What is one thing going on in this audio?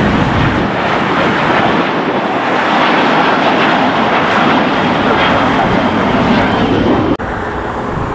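A twin-engine jet airliner roars overhead as it climbs after takeoff.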